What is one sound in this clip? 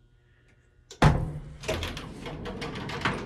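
A metal elevator gate clatters and bangs as it is pushed open by hand.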